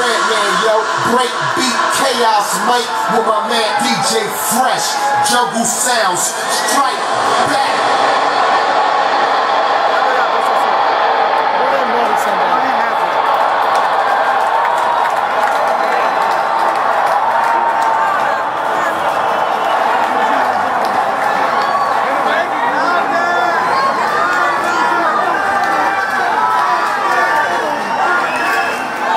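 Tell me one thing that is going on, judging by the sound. Loud electronic dance music plays through a large sound system.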